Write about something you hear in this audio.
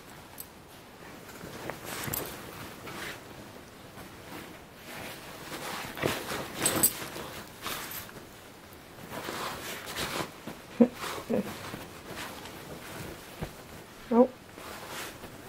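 Dogs' paws and bodies rustle against bedding.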